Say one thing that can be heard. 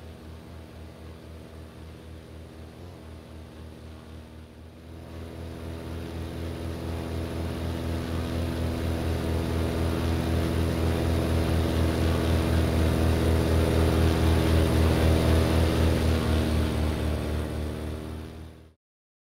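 A propeller plane's engine drones steadily, growing louder and closer.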